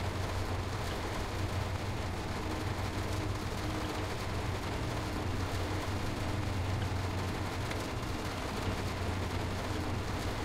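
Rain patters on a train's windscreen.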